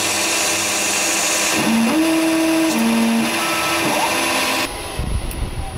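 A metal lathe whirs loudly as a cutting tool shaves metal.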